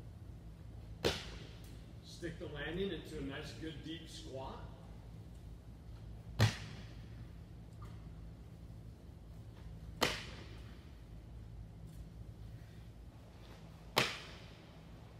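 A ball slams hard against the floor in a large echoing hall.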